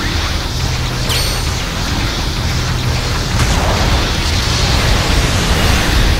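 A robot's beam rifle fires with sharp electric zaps.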